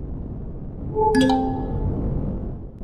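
A force shield switches on with a bright, ringing chime.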